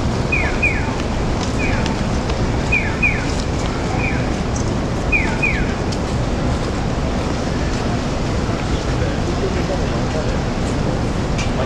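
Many footsteps shuffle past on pavement.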